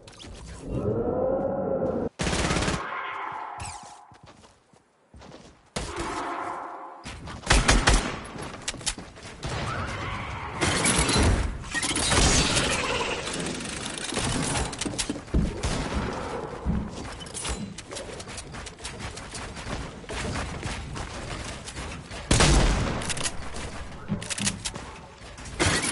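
Footsteps patter on grass and wood.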